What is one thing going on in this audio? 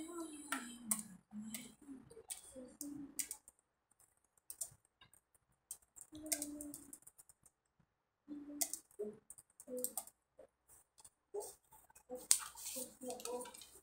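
Paper rustles and scrapes as hands slide paper cutouts across a sheet.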